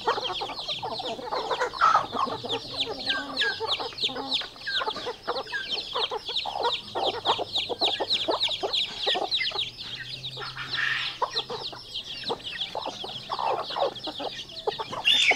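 Chicks peep rapidly and continuously.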